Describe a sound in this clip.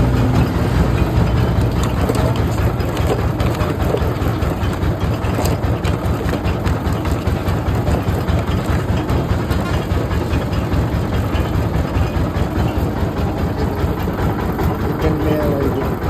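A motor-driven juice press rumbles and rattles loudly and steadily.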